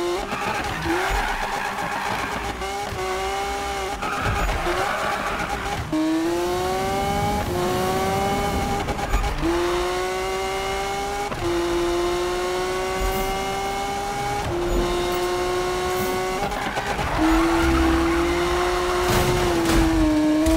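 Tyres screech as a car drifts around corners.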